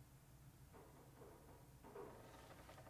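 Paper rustles as a scroll is unrolled.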